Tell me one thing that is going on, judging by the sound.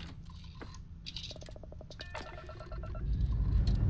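Electronic beeps and chirps sound from a control console.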